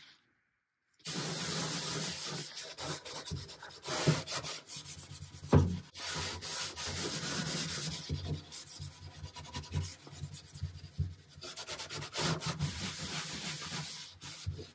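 A cloth rubs and scrubs across a wooden surface.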